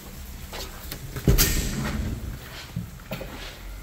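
A door swings open and thuds shut.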